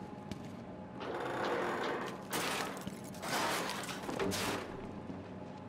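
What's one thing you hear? Boots clank on a metal ladder as someone climbs.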